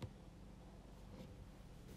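A needle and thread pull softly through taut fabric.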